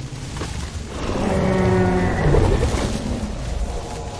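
A large creature lets out a long, deep bellowing call.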